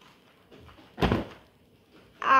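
A doll drops onto a soft cushion with a dull thud.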